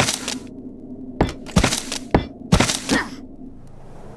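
Metal pieces clank and rattle sharply as they are pulled apart.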